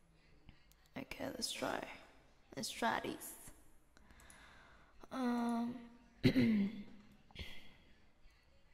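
A young woman speaks casually and close into a microphone.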